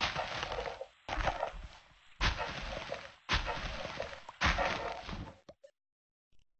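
Dirt crunches in repeated scraping bursts as blocks are dug out.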